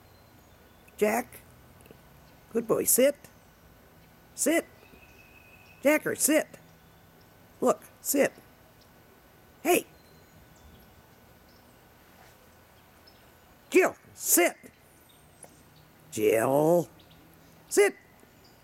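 A dog barks loudly and sharply, close by, in short bursts.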